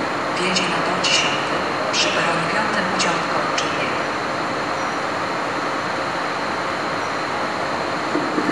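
A train rumbles slowly along the tracks toward a platform.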